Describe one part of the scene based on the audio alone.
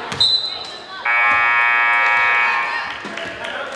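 A loud buzzer sounds in a steady blare.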